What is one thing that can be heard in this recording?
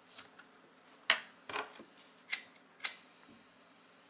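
A lighter clicks as it is lit.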